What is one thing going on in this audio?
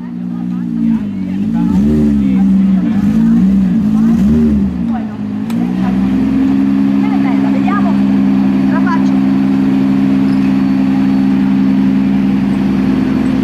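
A car engine revs up and down, then settles into a steady idle close by.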